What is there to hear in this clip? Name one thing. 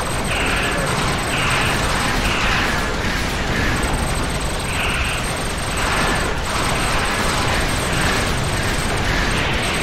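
Laser weapons fire in repeated zapping bursts.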